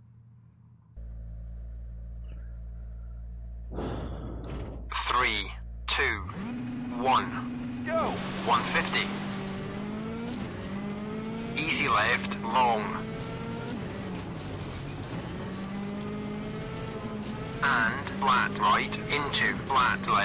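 A car engine idles and then revs hard as the car speeds away.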